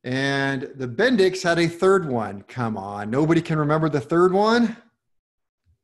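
A man speaks calmly into a close microphone, as on an online call.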